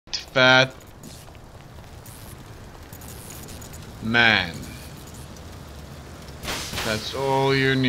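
Flames crackle from a burning car.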